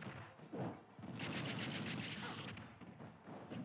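A video game's energy blast whooshes loudly.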